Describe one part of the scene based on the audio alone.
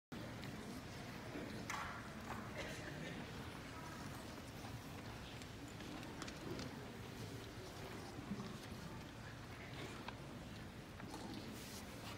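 An audience murmurs quietly nearby.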